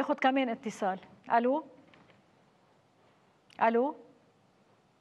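A middle-aged woman speaks calmly into a microphone in short phrases.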